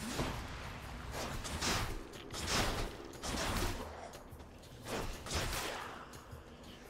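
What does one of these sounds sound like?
Magic blasts crackle and whoosh in a video game fight.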